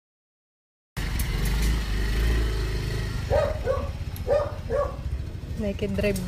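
A motorcycle engine runs and pulls away.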